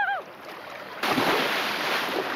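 A big splash erupts as someone jumps into the water.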